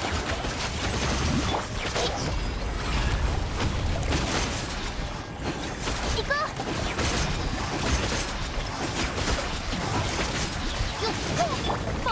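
Slashing strikes hit with sharp impacts.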